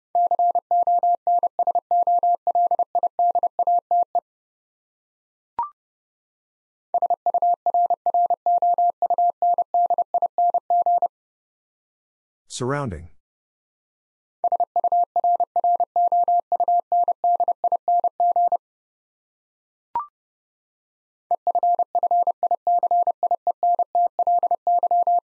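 A telegraph key taps out rapid Morse code beeps.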